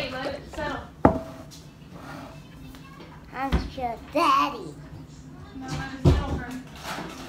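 A glass jar knocks down onto a wooden table.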